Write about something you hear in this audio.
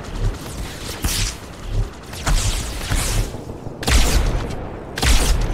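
A plasma gun fires rapid sizzling bursts.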